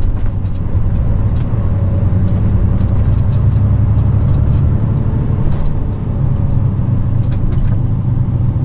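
A truck engine hums low and steady from inside the cab as it drives.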